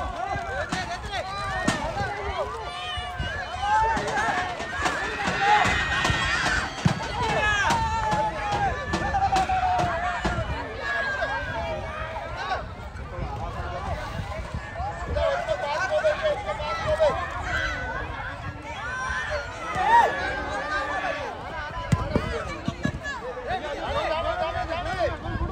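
Players and spectators shout and call out outdoors throughout.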